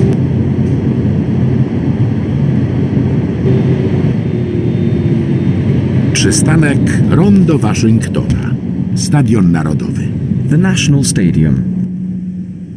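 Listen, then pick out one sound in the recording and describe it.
A tram's electric motor hums steadily as it rolls along and slows down.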